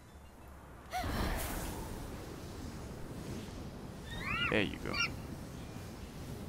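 Wind rushes past steadily during a glide through the air.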